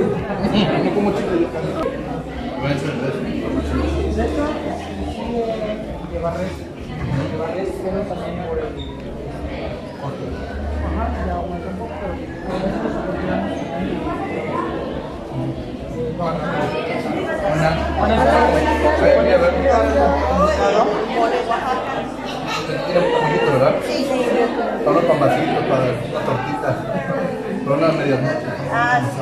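A crowd chatters in a busy, echoing hall.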